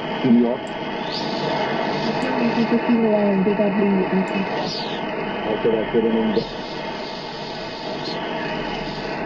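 A radio gives short whistling tones that rise and fall.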